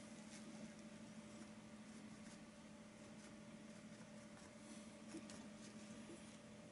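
A paintbrush dabs and scratches softly on canvas.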